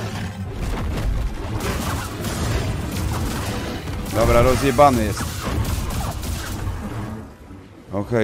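Heavy thuds and crackling blade strikes clash in a fight.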